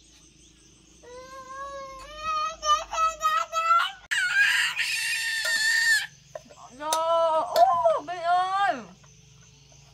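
A small child babbles and squeals loudly nearby.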